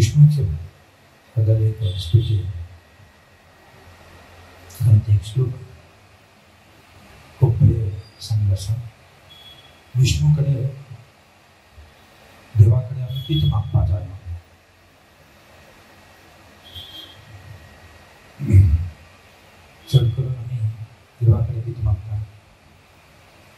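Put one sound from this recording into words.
A man speaks calmly and slowly into a microphone, in short phrases with pauses.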